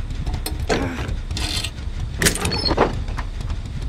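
A wooden chest lid creaks open.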